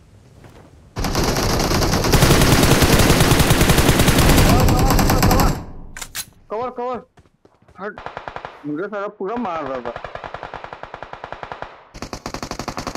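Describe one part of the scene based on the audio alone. A rifle fires in rapid automatic bursts.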